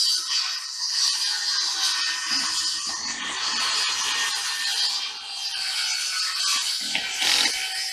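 A wooden board bumps and scrapes against a plywood roof.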